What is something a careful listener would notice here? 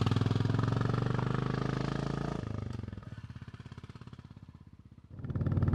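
A motorcycle engine revs loudly and then fades as the bike rides away.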